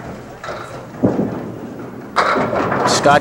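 Bowling pins crash and clatter as they fall.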